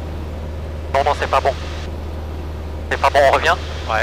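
A man speaks briefly over a headset intercom.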